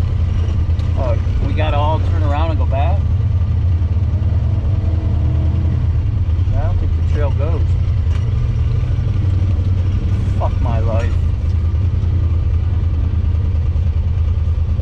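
An off-road vehicle's engine rumbles steadily nearby.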